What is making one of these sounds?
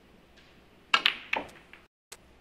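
Snooker balls clack against each other.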